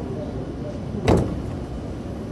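Train doors slide open with a thud.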